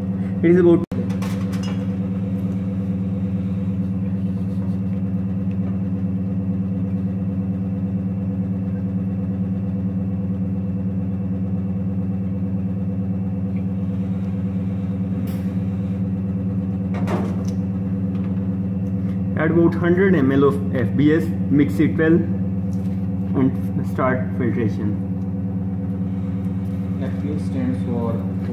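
A ventilation fan hums steadily.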